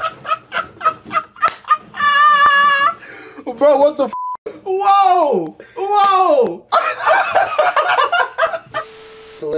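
Young men laugh loudly and excitedly close by.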